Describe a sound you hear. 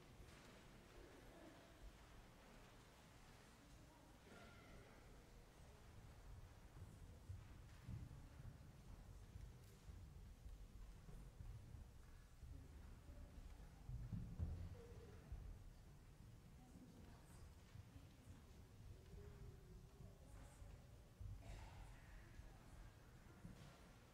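A crowd of adults murmurs and talks quietly in a large echoing hall.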